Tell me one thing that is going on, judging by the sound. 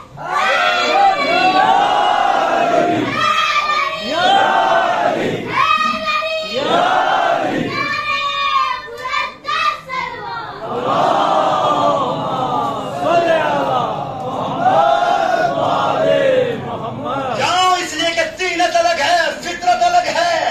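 A man chants loudly and with emotion through a microphone and loudspeakers.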